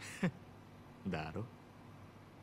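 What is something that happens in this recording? A man gives a short chuckle.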